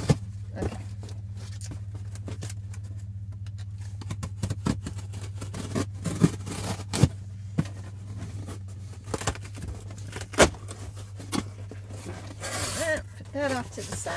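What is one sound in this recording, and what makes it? Cardboard rustles and thumps as a box is handled.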